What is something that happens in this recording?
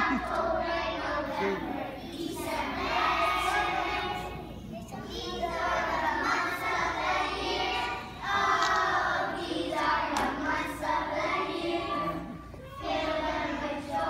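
A group of young children sings together in a large echoing hall.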